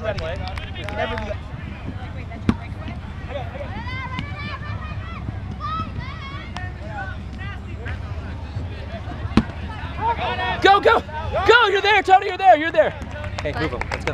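Adult players shout to each other across an open field outdoors.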